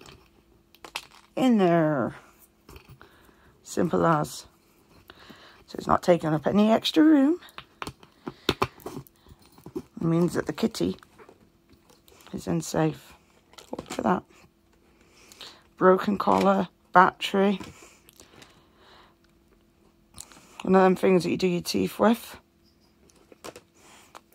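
A plastic bottle crackles and clicks as it is handled.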